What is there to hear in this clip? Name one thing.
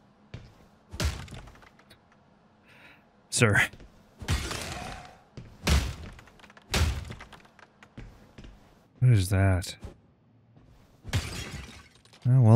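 Heavy blows smash porcelain and wood with loud crashes.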